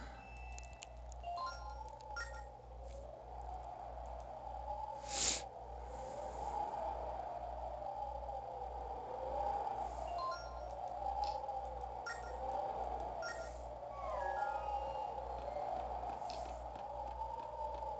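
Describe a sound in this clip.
Gentle game music plays steadily.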